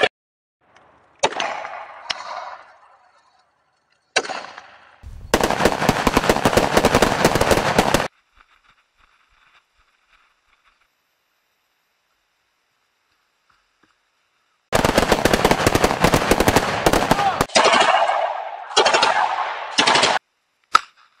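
Gunshots bang and echo across open ground.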